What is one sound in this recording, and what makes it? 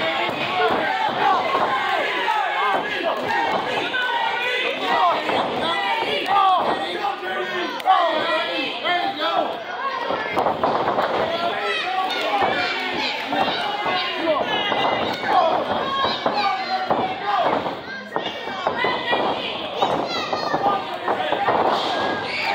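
A crowd of spectators shouts and cheers loudly in an echoing hall.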